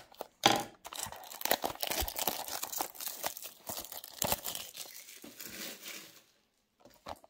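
Plastic wrap crinkles close by.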